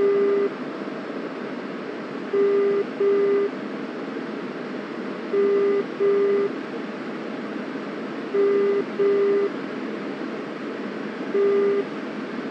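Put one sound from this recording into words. A jet engine roars steadily with a rush of air.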